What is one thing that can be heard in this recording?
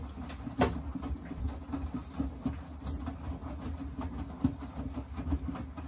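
A washing machine drum turns with a steady low rumble.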